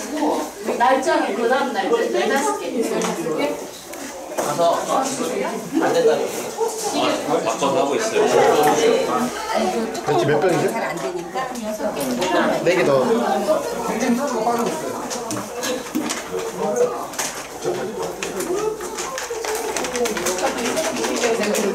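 Several women talk and chatter nearby.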